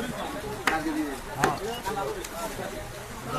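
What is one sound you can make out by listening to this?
A cleaver chops meat on a wooden block with sharp thuds.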